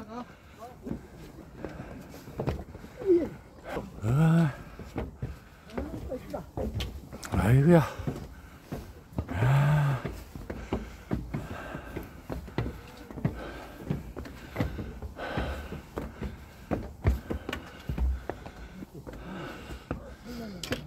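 Footsteps thud steadily on wooden stairs.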